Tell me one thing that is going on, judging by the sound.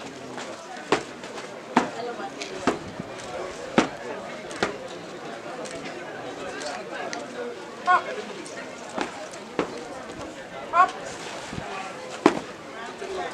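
Boots stamp sharply on the ground in marching steps.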